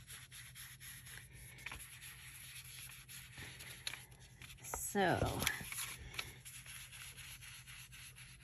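Paper rustles and crinkles as hands smooth and fold it.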